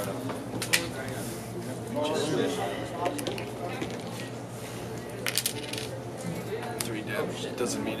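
Cards tap and slide on a tabletop.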